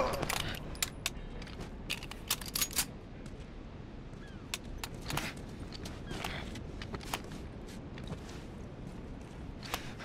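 Footsteps scuff softly on a hard floor.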